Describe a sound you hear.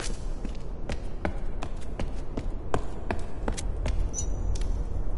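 Footsteps tap on a hard stone floor at a steady pace.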